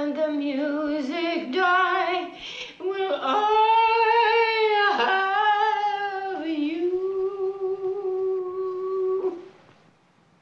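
An elderly woman speaks close by in a drawn-out, sing-song voice.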